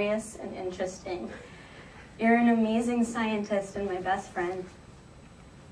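A young woman speaks calmly through a microphone in a large room.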